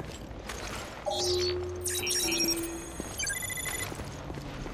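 An electronic scanner beeps and chirps in high tones.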